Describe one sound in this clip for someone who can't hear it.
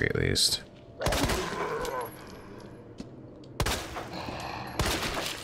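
A handgun fires several loud shots with a short echo.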